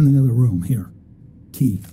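A man speaks calmly and briefly.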